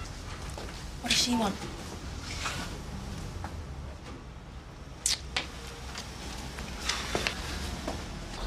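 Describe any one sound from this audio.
A man speaks on a phone in a calm voice.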